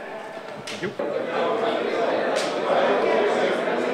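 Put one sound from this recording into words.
A young man speaks up loudly, and other men answer with lively voices.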